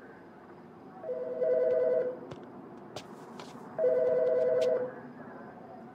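A telephone rings in short trilling bursts.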